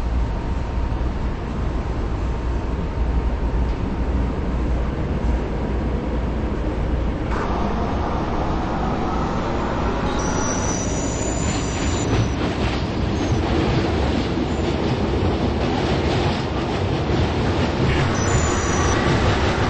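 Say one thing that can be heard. A subway train rumbles and rattles as it speeds up through a tunnel.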